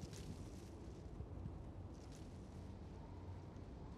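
Heavy footsteps run over dry ground.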